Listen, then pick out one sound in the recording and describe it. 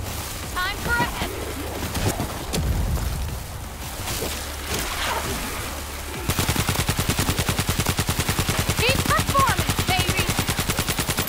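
Zombies snarl and groan nearby.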